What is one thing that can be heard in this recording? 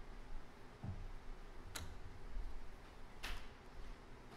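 Plastic game tokens click on a wooden table.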